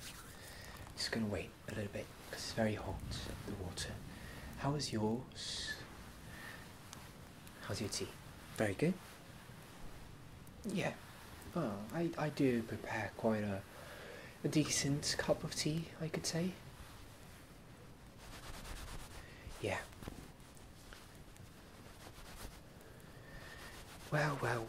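A young man speaks softly and close to a microphone, in short phrases with pauses.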